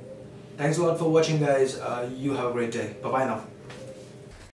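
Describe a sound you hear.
A young man speaks clearly into a microphone.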